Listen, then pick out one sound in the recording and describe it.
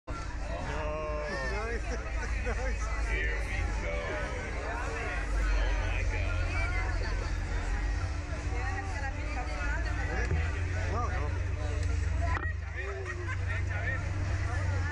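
Young men laugh close by.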